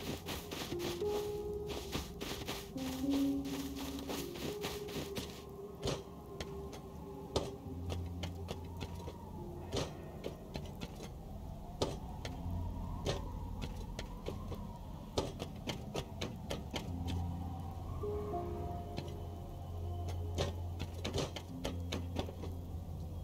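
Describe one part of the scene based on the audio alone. Footsteps clank on metal rungs and boards.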